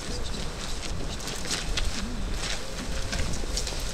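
Footsteps shuffle on pavement as several men walk.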